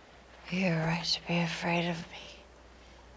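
A young woman speaks a few words softly and close by.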